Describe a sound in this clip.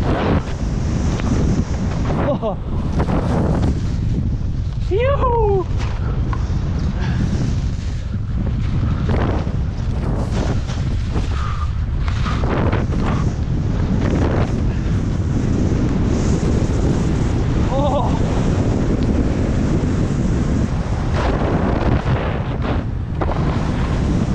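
Skis hiss and scrape over snow.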